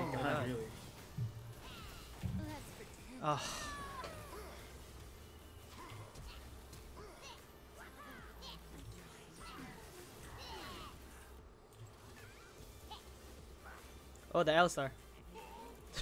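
Video game spell effects whoosh and clash.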